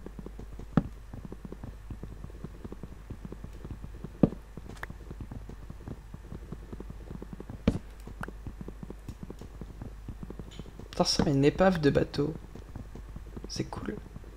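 A pickaxe chips repeatedly at wooden blocks.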